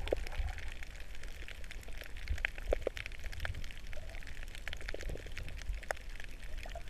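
Water rumbles and crackles, heard from under the surface.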